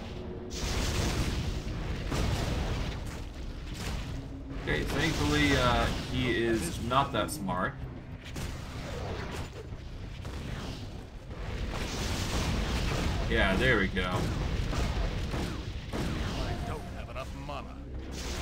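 Weapons clash with sharp hits.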